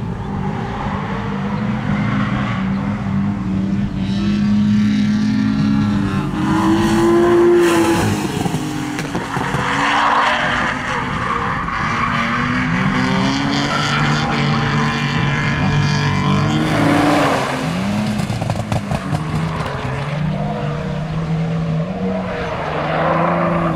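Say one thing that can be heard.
A car engine revs hard, rising and falling in pitch.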